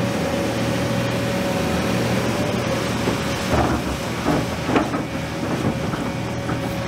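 Gravel and stones clatter as an excavator bucket scoops and dumps them.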